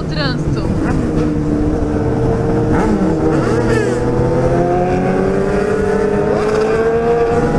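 A motorcycle engine hums steadily and slowly rises in pitch as it speeds up.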